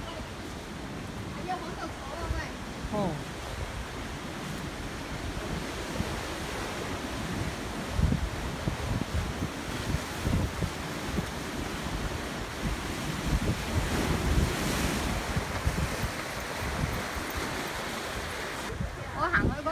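Wind buffets outdoors in gusts.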